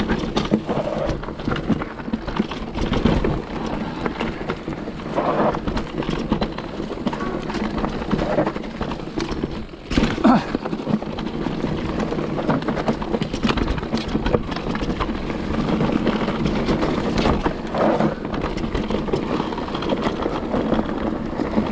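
Bicycle tyres rattle and crunch over a bumpy dirt trail.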